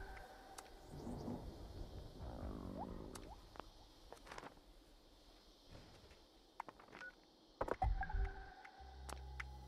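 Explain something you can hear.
Short electronic menu clicks and beeps sound.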